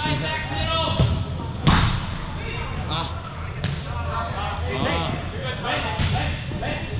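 A man talks close by, with echo of a large indoor hall.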